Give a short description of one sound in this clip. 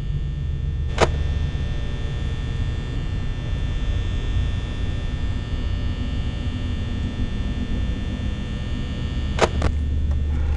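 A small fan whirs steadily.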